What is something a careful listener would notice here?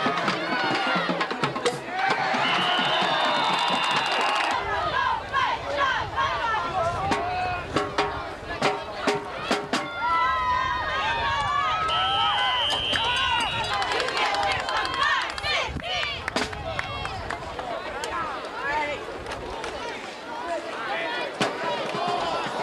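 Football pads clatter and thud as players collide.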